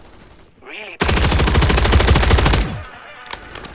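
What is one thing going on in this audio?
A rifle fires a rapid burst of automatic shots close by.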